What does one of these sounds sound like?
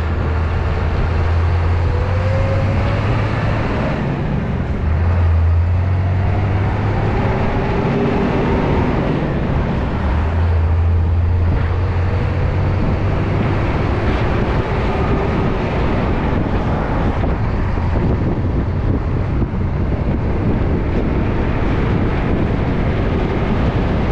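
A large vehicle's engine rumbles steadily.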